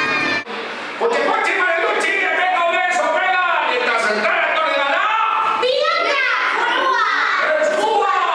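A group of children shout and sing together close by.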